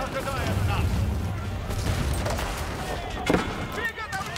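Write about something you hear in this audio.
Cannons boom in a battle.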